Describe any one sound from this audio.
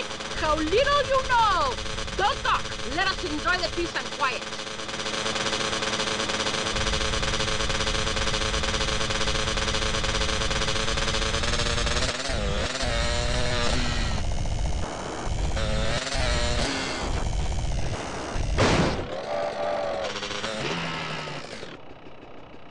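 A quad bike engine hums steadily and revs as it drives over rough ground.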